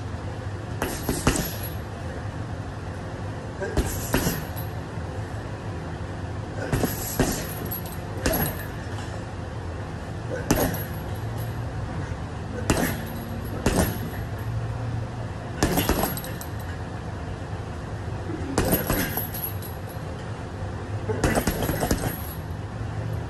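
Gloved punches thump against a heavy hanging bag at irregular intervals.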